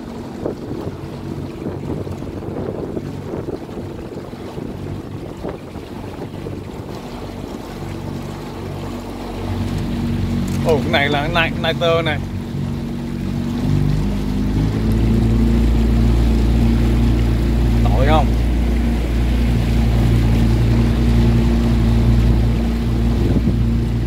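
Water laps and splashes against a boat's hull.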